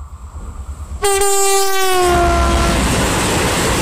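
A diesel locomotive sounds a loud air horn with a falling pitch.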